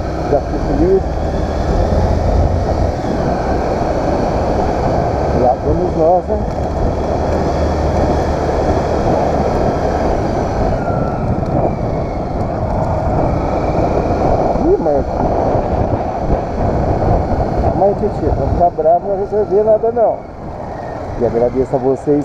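Wind rushes past close by outdoors.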